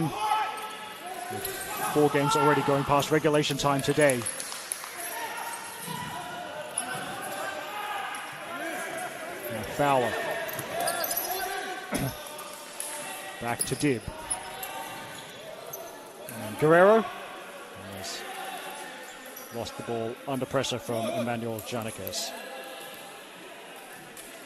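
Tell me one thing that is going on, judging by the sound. Spectators chatter and shout in a large echoing hall.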